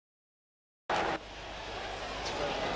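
A football is struck hard with a thump.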